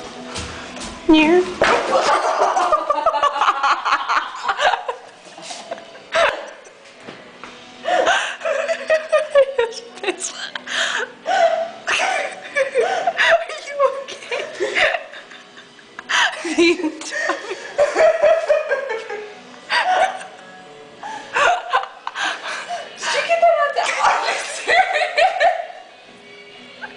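A young woman shouts and laughs loudly close by, her voice echoing in a hard hall.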